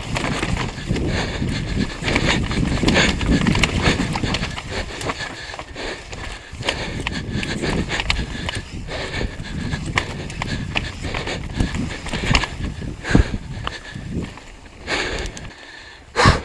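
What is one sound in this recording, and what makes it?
Bicycle tyres rumble and crunch over a rough dirt and stone trail.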